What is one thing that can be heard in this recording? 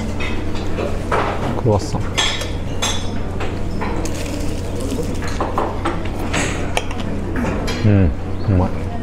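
Flaky pastry crackles as it is torn apart.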